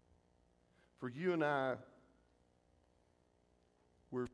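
A middle-aged man speaks through a microphone in a large echoing hall, with pauses.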